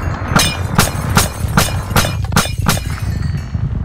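Blocks shatter with a quick series of sharp cracks.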